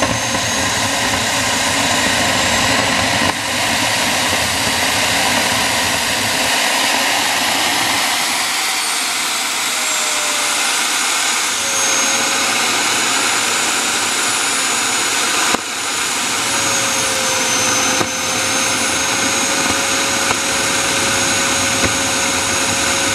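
A small jet turbine engine roars and whines loudly and steadily, its pitch shifting slightly.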